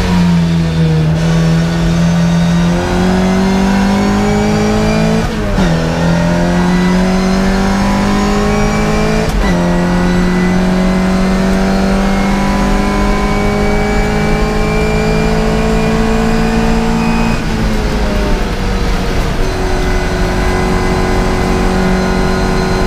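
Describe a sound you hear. A racing car's engine roars at full throttle, heard from inside the cabin.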